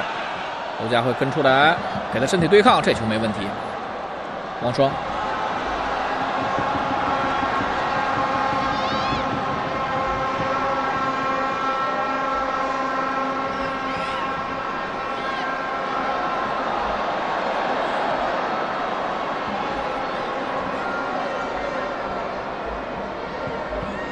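A large stadium crowd chants and roars steadily in the distance.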